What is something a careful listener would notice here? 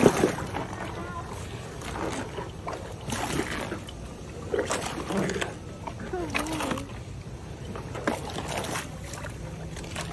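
A hippo crunches and chomps on a pumpkin.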